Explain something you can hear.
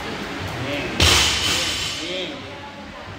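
A barbell is dropped and crashes onto the floor with a heavy rattle of plates.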